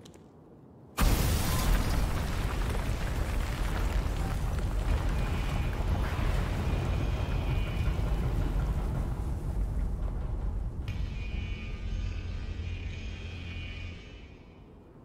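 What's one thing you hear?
A loud rumbling roar bursts in and slowly fades away.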